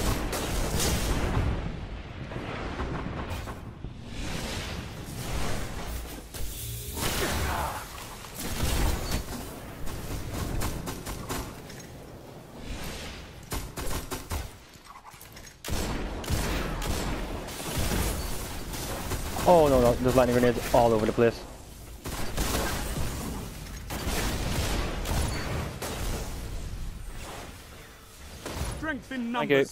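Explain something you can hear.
Gunfire rattles and cracks in quick bursts.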